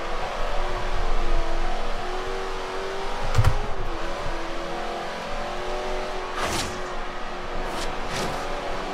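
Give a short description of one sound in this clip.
A racing car engine roars at high revs, shifting gears as the car speeds up.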